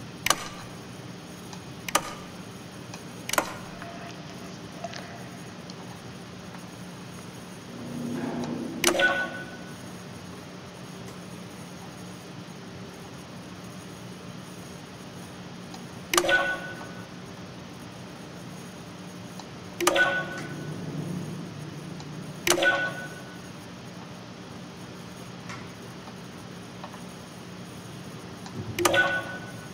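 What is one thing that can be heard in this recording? Switches on a control panel click and clunk loudly, again and again.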